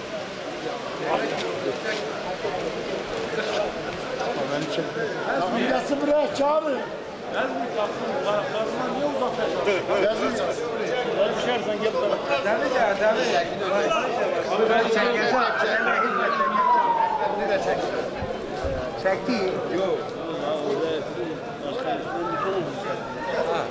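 A crowd of men chatters throughout, outdoors in an open stadium.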